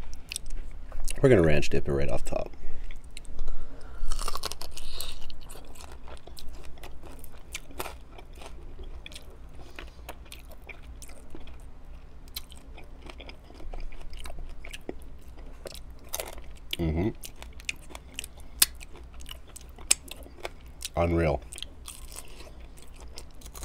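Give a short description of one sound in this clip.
A man chews and smacks his lips on chicken wings close to a microphone.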